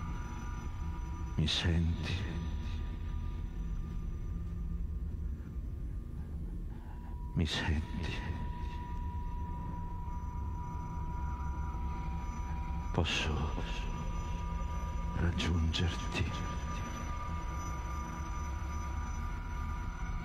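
A middle-aged man speaks calmly at a distance.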